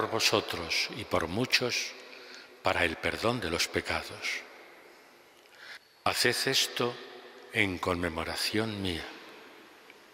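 An elderly man speaks slowly and solemnly through a microphone in an echoing hall.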